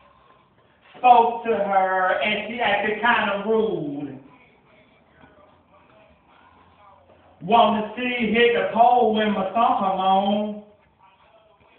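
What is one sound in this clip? A young man raps loudly into a microphone close by, in short bursts.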